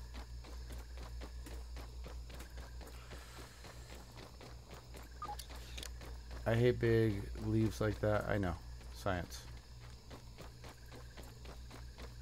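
Quick footsteps patter steadily on soft ground.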